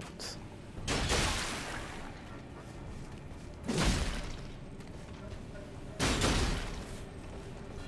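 Blades clash and strike with heavy blows in a fight.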